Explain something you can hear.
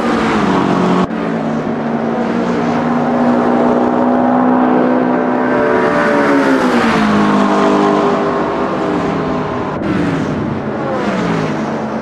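Racing car engines roar loudly, rising and falling in pitch as gears change.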